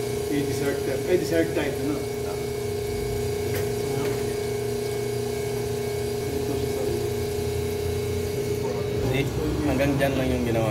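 An espresso machine hums steadily as it pumps.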